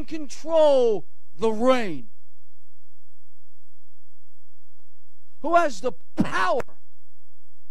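An elderly man speaks emphatically into a microphone in short bursts.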